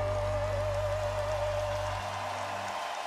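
A woman sings a long held note through a microphone.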